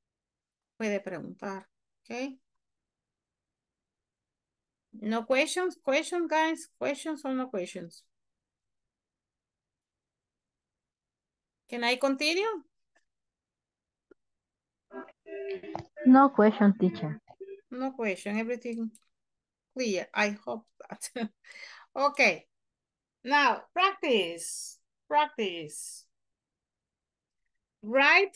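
A woman speaks calmly and clearly over an online call.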